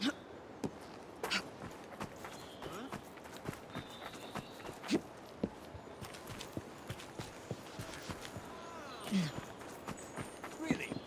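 Footsteps patter quickly across a rooftop.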